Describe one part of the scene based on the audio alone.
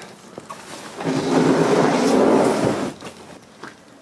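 A heavy bag shifts and rustles.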